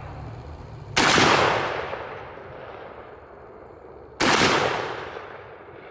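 A shotgun fires a loud blast that echoes outdoors.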